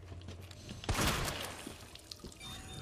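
A gunshot bangs loudly in a corridor.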